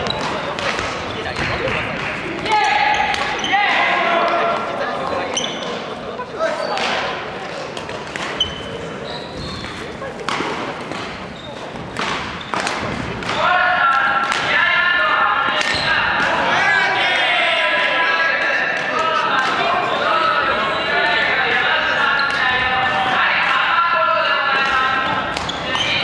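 Young men and women talk and call out in the background of an echoing hall.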